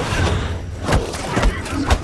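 Guns fire in bursts.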